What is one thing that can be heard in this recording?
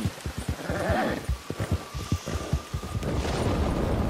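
A horse gallops with heavy, quick hoofbeats on soft ground.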